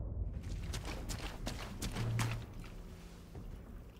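Footsteps crunch on cobblestones.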